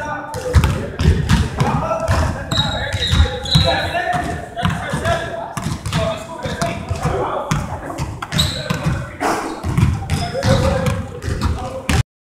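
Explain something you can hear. A basketball bounces repeatedly on a wooden floor in a large echoing gym.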